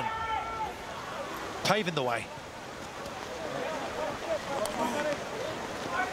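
A crowd cheers in the stands outdoors.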